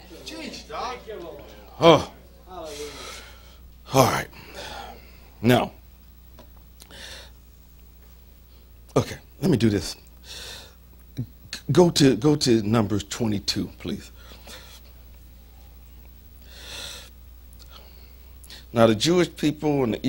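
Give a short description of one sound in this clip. A man speaks with emphasis into a microphone, in bursts with pauses.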